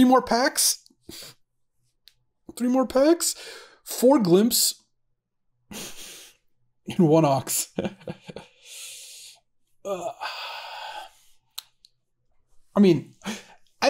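A man talks casually and animatedly into a close microphone, with pauses.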